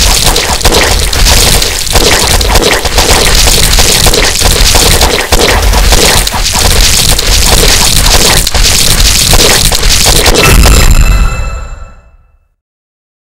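Video game battle effects clash and bang rapidly.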